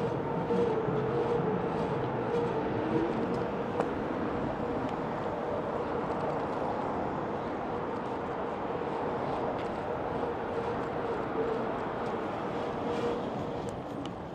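An electric bike's motor whines steadily under way.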